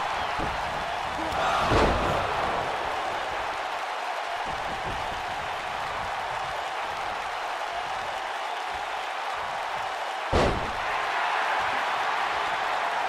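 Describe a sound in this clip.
An arena crowd roars and cheers.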